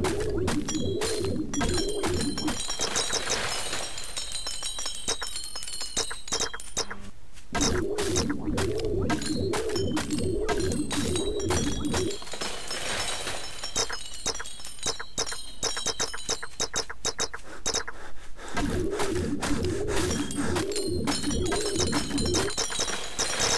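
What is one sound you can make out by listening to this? Chopping blows strike wood in quick, steady bursts.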